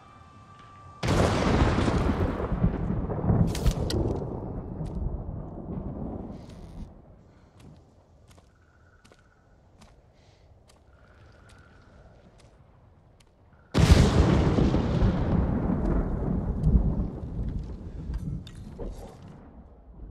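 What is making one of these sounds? Thunder cracks loudly and rumbles away slowly.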